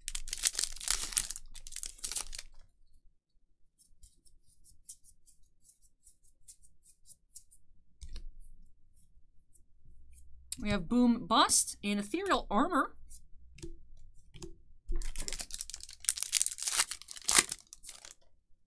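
A foil pack crinkles and tears as hands open it.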